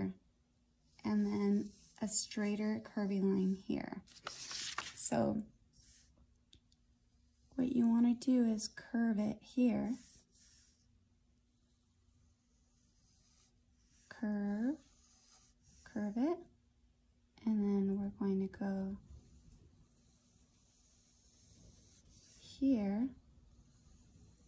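A pencil scratches softly across paper.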